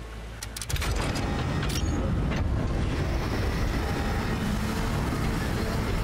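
A heavy metal shutter slides shut with a mechanical whir.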